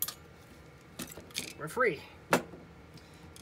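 Small plastic parts clatter and knock as they are handled.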